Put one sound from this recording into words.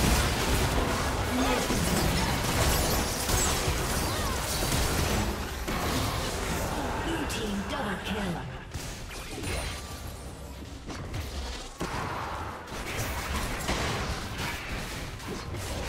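Magic blasts and clashing hits crackle in a fast video game battle.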